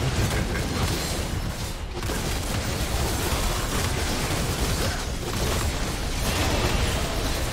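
Magic blasts crackle and boom in a fast fight.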